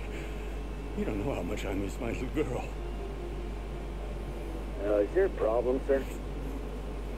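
A man speaks quietly close to a microphone.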